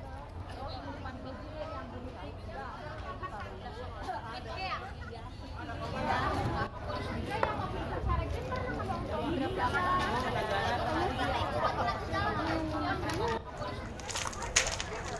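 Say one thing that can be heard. A crowd of men and women talk and call out nearby, outdoors.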